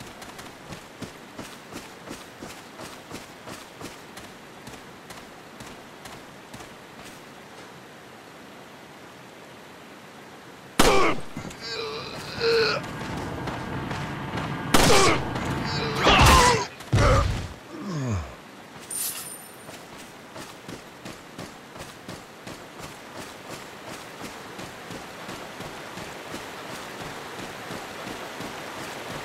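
Footsteps crunch steadily on dry leaves.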